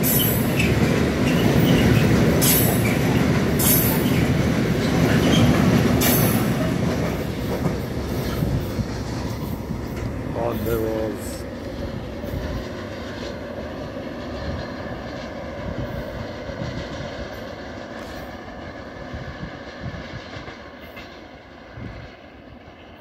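A freight train rumbles and clatters past close by, then fades into the distance.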